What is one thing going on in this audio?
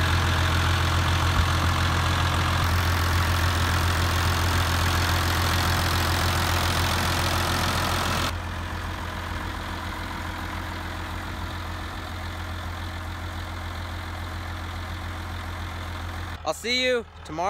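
A diesel tractor engine idles with a steady low rumble, up close.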